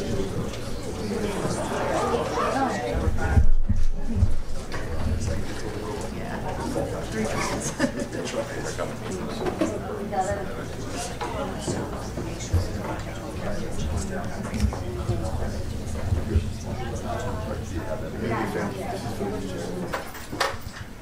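A crowd of men and women murmurs and talks nearby.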